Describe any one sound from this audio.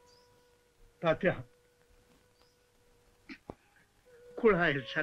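A young man speaks gently.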